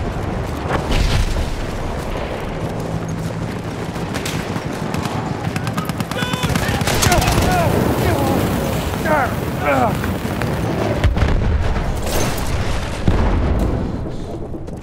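Gunshots crack out in quick bursts.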